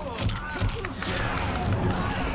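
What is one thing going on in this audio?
Energy whooshes swirl.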